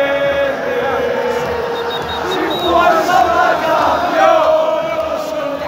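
A large crowd of men chants and sings loudly outdoors.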